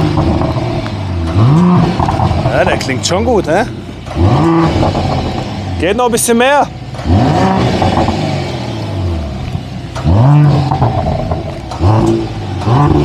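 A car engine idles with a deep rumble between revs.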